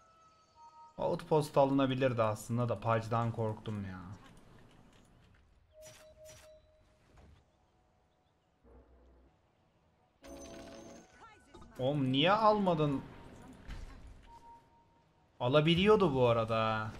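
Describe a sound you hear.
A man talks into a close microphone in bursts, with animation.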